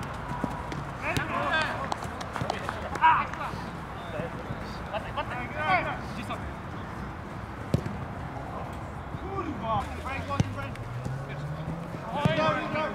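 Men shout to each other outdoors across an open pitch.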